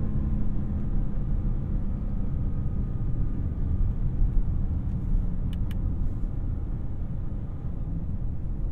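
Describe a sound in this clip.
A twin-turbo W12 luxury sedan cruises, its engine droning low, heard from inside the cabin.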